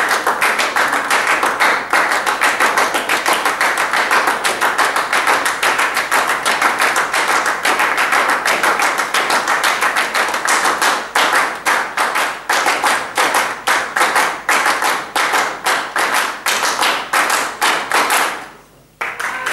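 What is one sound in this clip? A band plays a lively piece with a steady beat in a large hall.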